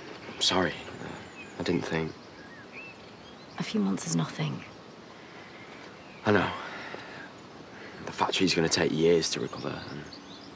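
A young man talks close by in a troubled, hesitant voice.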